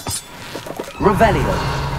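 A magic spell bursts with a crackling whoosh.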